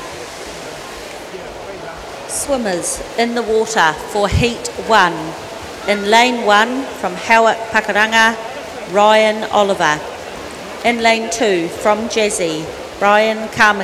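Swimmers splash steadily as they swim.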